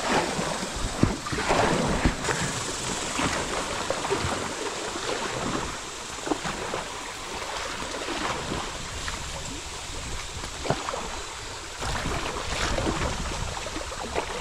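A paddle dips and splashes in the water.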